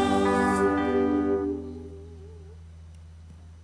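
A group of men and women sing together through microphones.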